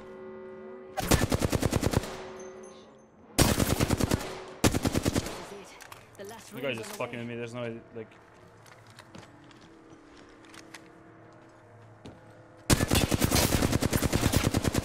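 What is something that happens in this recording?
An automatic rifle fires rapid bursts of shots, close by.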